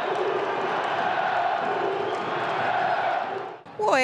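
A large crowd cheers and chants in a stadium.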